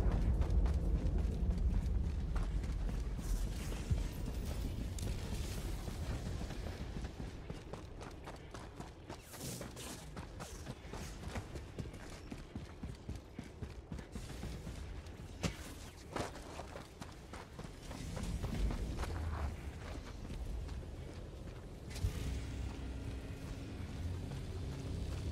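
Heavy footsteps crunch on rocky ground.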